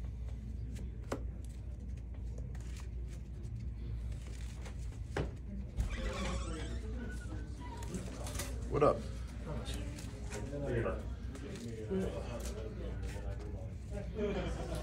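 Playing cards riffle and tap as a deck is shuffled by hand.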